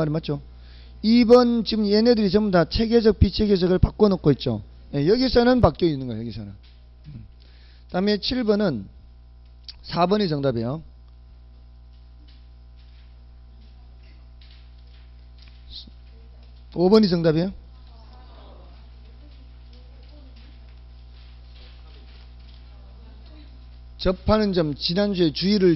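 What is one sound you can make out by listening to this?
A man speaks calmly through a handheld microphone, in short bursts with long pauses.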